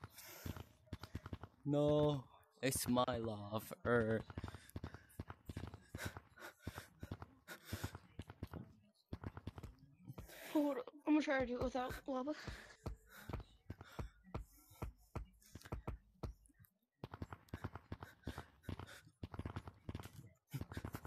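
Hands grab and scrape against rock in quick, uneven knocks.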